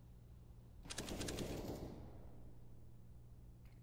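A sniper rifle scope clicks as it zooms in.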